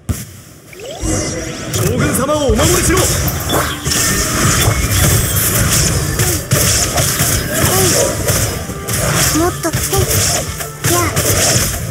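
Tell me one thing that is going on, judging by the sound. Magic blasts crackle and boom in a rapid fight.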